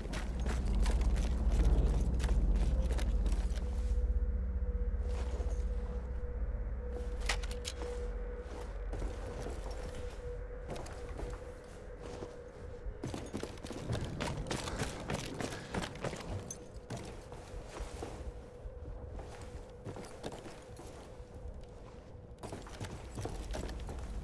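Footsteps thud on wooden floors and stone.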